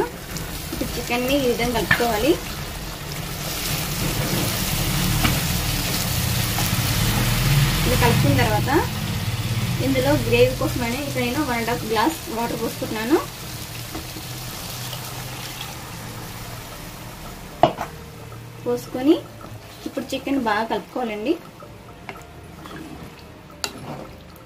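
A spatula scrapes and stirs food in a pan.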